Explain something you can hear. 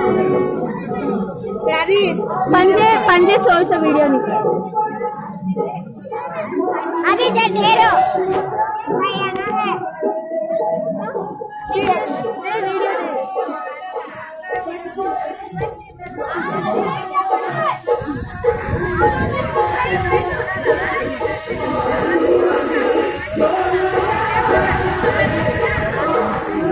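A crowd of men and women talk and shout close by.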